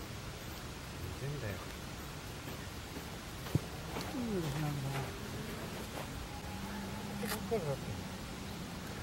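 Older men talk casually nearby outdoors.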